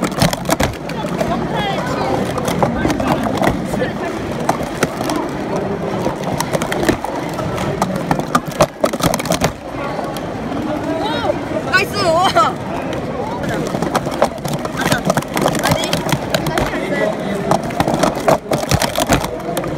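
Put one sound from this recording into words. Plastic cups clack rapidly as they are stacked and unstacked.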